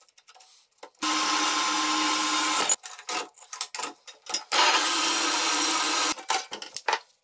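A metal-cutting saw runs with a loud, steady grinding whine.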